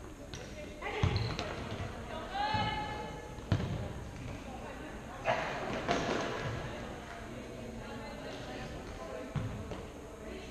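A ball thuds as it is kicked in a large echoing hall.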